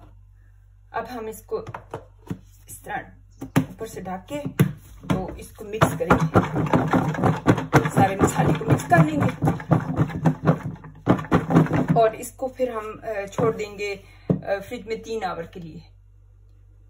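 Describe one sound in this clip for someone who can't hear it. A plastic lid clicks and snaps onto a container.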